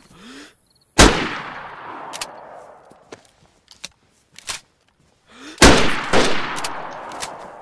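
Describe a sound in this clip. A rifle fires loud shots that echo across open ground.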